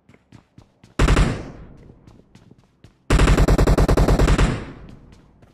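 A rifle fires rapid bursts with loud echoing shots.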